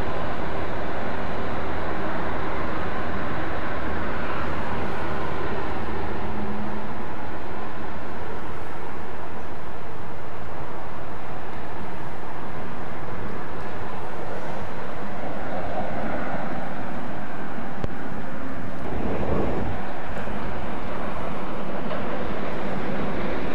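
A diesel train engine rumbles steadily as a train approaches slowly.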